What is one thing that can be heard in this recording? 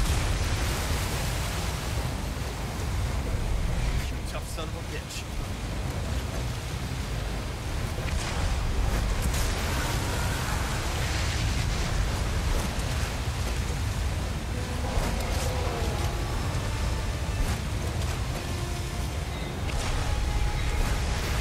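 A large creature crashes and thrashes through the water.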